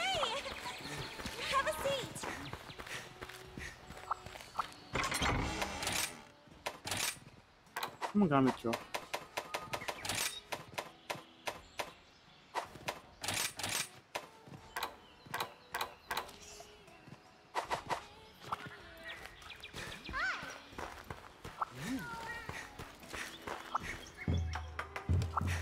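Footsteps patter on stone as a game character runs.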